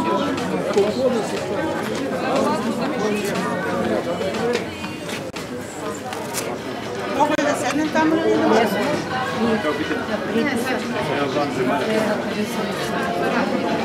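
Several men and women talk at once close by in a lively crowd.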